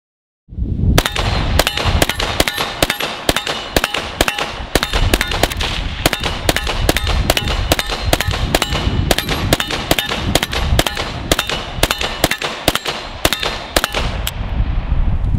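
A rifle fires rapid shots outdoors, each with a sharp crack.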